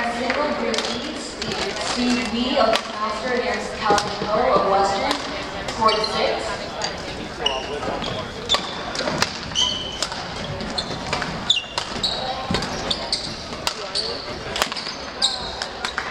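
A crowd of young people chatters nearby.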